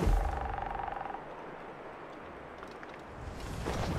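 Leaves and branches rustle as someone pushes through brush.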